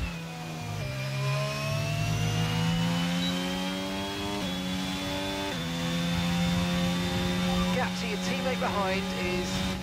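A racing car engine roars at high revs, rising in pitch and dropping briefly with each gear change.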